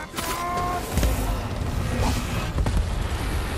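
Heavy blows thud with a low rumble.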